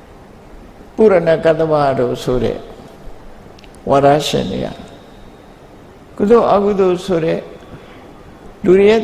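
An elderly man speaks calmly into a microphone in short phrases with pauses.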